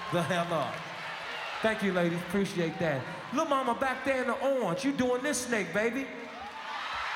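A man sings loudly into a microphone.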